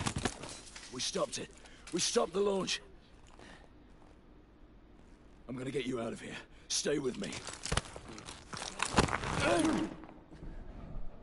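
A man shouts urgently and breathlessly up close.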